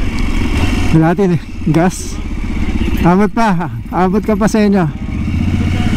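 A motorcycle engine revs up and down sharply several times as it changes gears.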